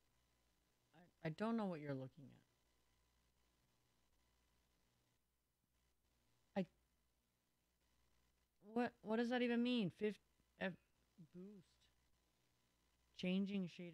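A young woman speaks in short bursts into a microphone, close by.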